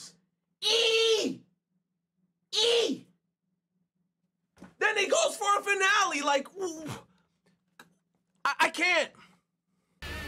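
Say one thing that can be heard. A young man shouts and yells excitedly into a close microphone.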